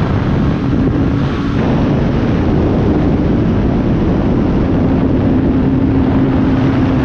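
An aircraft engine drones steadily close by.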